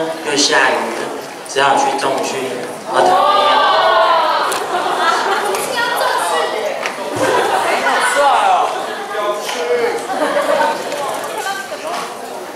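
A young man speaks with animation into a microphone, heard through loudspeakers in a large hall.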